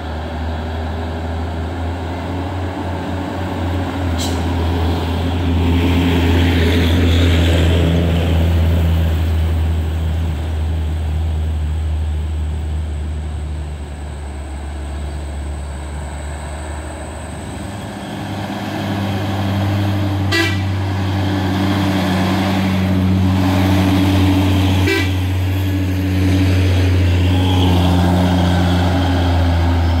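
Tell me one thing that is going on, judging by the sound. Heavy truck engines rumble and labour as trucks drive by up close.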